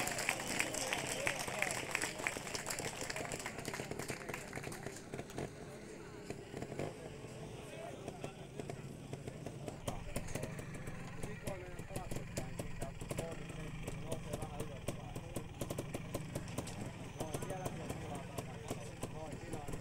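A motorcycle engine putters and revs nearby.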